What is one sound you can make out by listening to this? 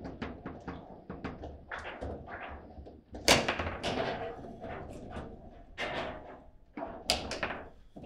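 A foosball clatters and knocks sharply against the rods and walls of a table.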